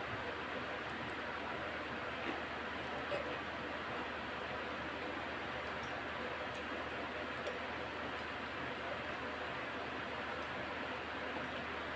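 A man chews food noisily, close by.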